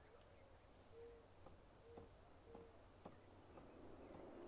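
Footsteps walk slowly across a wooden floor.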